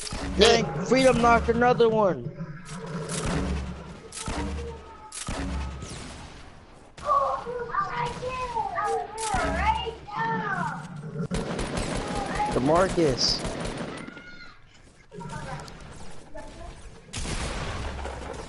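Rifle shots fire rapidly in a video game.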